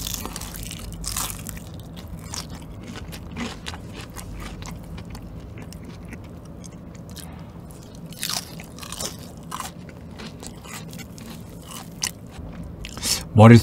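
A man bites into crunchy fried chicken close to a microphone.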